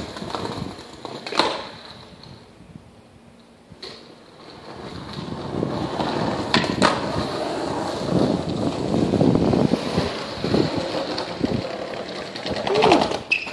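Skateboard wheels roll and rumble on pavement.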